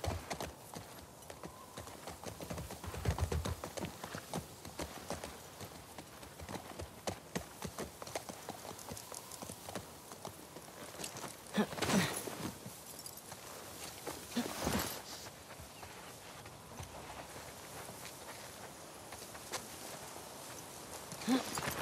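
Tall grass rustles and swishes against moving legs.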